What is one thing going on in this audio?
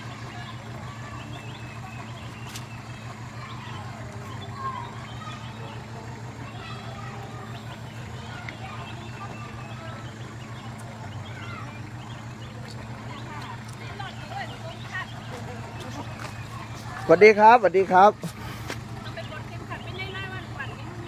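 A van engine idles with a steady low hum.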